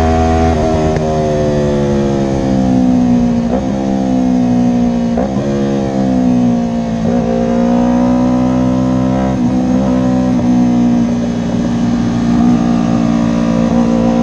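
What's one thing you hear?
A motorcycle engine roars loudly, its pitch rising and dropping with gear shifts.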